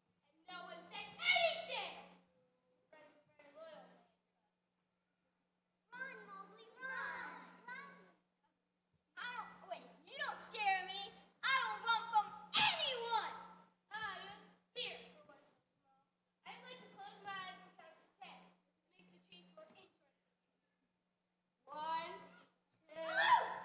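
Young girls speak lines one after another through microphones on a large stage with a faint echo.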